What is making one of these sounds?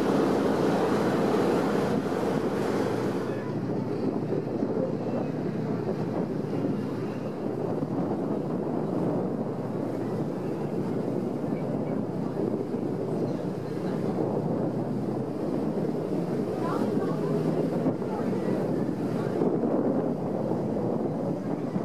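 Water rushes past a moving boat's hull.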